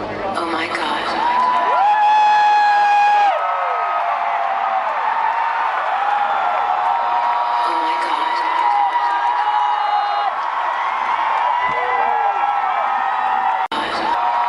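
A crowd cheers in a large hall.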